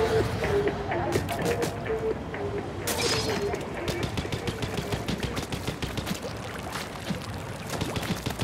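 Wet ink splatters and splashes in quick bursts.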